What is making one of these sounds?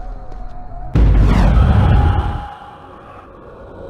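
A loud deep rumbling blast roars and fades.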